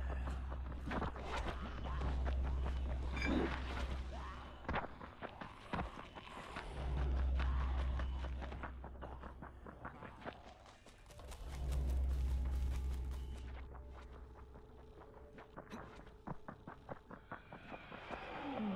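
Footsteps run quickly through grass and over the ground.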